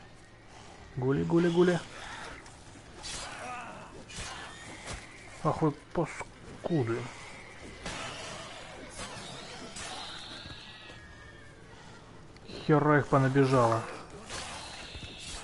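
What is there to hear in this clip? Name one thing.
Wild beasts snarl and growl while they attack.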